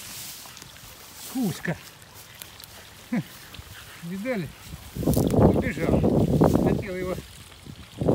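A stick splashes and stirs in pond water.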